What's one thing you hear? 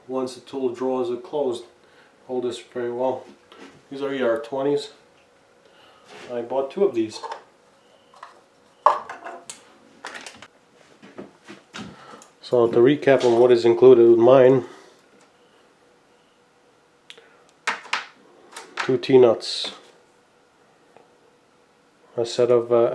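A man talks calmly and close by, pausing now and then.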